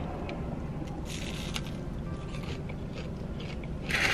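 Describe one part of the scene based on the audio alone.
A woman bites into crunchy fried food.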